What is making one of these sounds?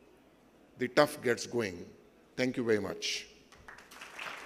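An elderly man speaks calmly into a microphone in a large echoing hall.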